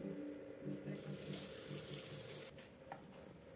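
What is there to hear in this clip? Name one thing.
Water runs from a tap into a metal sink.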